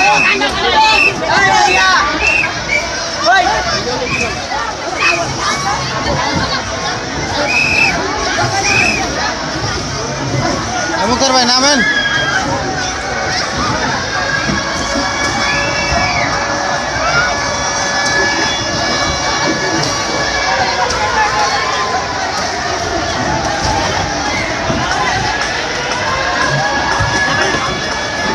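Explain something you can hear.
A large crowd of children and adults shouts and chatters outdoors.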